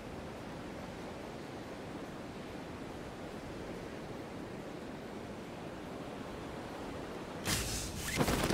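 Wind rushes steadily past a falling figure.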